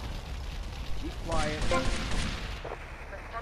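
Blows land in a short scuffle.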